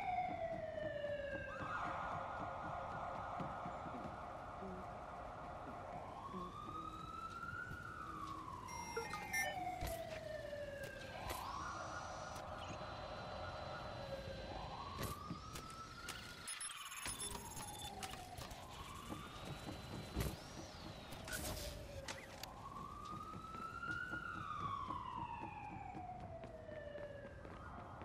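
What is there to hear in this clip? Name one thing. Footsteps run on wooden boards.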